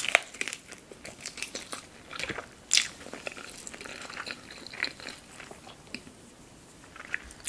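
A woman chews food wetly and noisily close to a microphone.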